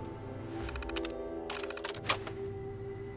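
An old computer terminal beeps and clicks as it switches on.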